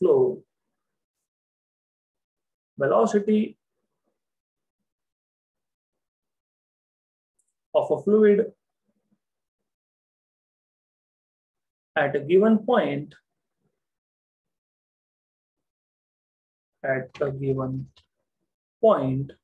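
A young man speaks calmly into a microphone in short phrases with pauses.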